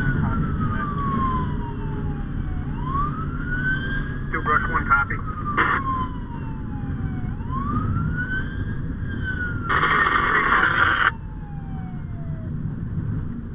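A siren wails loudly, rising and falling, then stops.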